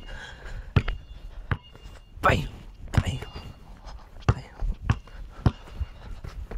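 A basketball bounces on concrete with sharp thuds.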